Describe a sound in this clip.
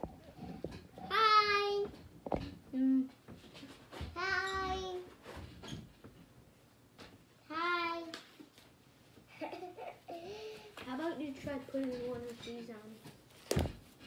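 A little girl squeals in a high voice.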